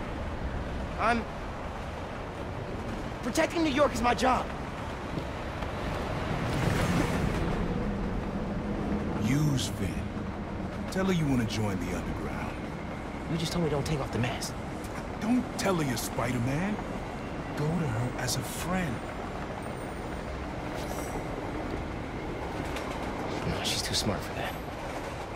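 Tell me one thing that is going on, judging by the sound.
A young man speaks, sounding strained and upset.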